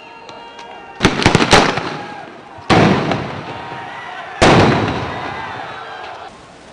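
Tear gas shells go off with loud bangs that echo away.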